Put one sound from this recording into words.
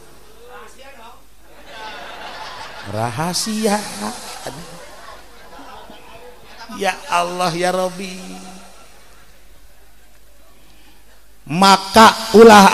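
An elderly man speaks with feeling into a microphone, his voice rising at times into a loud, drawn-out cry.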